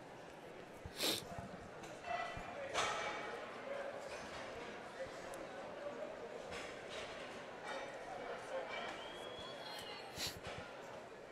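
Heavy barbells clank and thud as they are lifted and set down.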